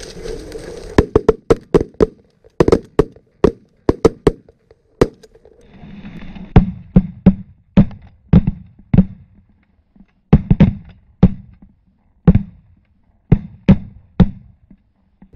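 Shotguns fire loud shots in rapid succession, outdoors.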